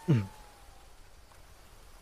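A hand grabs a rope with a soft rustle.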